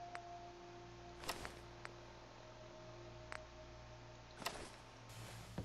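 Short electronic clicks sound from a handheld device.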